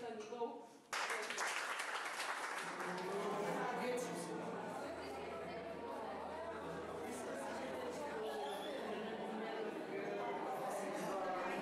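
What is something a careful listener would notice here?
A crowd of adults chatters in the background.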